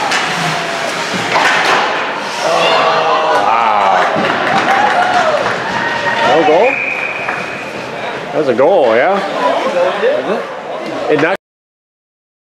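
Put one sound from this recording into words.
Ice hockey skates scrape across ice in an echoing rink.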